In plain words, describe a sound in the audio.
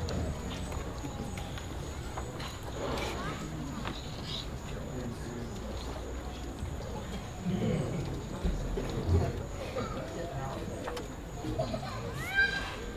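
An audience murmurs and chats quietly nearby.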